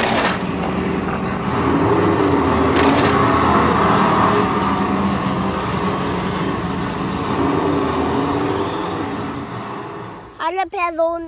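A toy truck's electric motor whirs.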